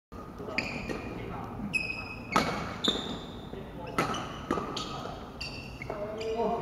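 Sneakers squeak sharply on a wooden floor.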